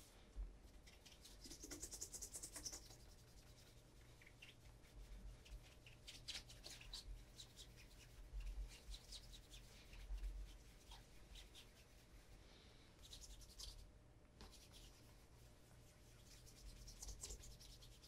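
A cloth rubs briskly against leather in quick strokes.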